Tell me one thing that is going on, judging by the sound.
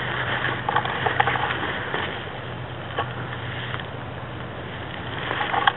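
Leaves and twigs rustle and scrape close by.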